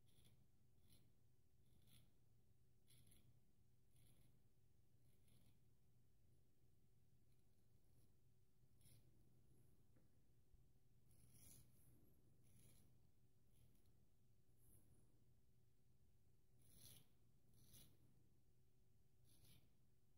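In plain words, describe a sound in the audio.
A razor blade scrapes through stubble in short, rasping strokes.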